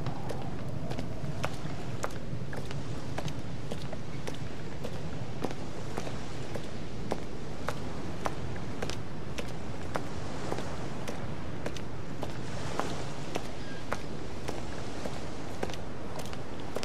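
Footsteps thud steadily on wooden planks.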